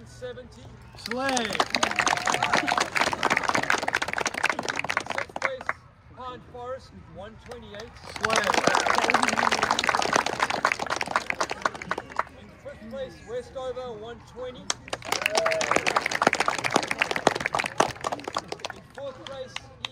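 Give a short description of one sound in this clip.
A crowd claps and cheers outdoors.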